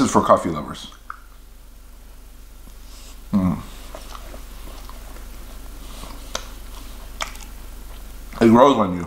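A man chews food with his mouth closed.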